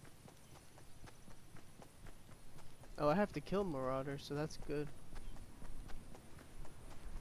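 Footsteps pad quickly and evenly over grass.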